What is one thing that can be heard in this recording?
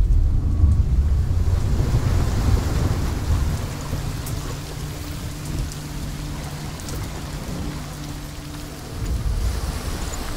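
Stormy sea waves surge and roar.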